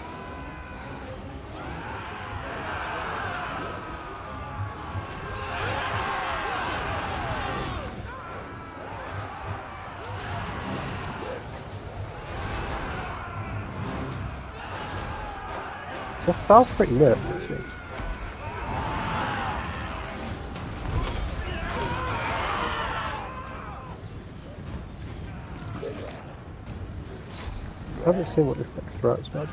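Weapons clash and clang in a large battle.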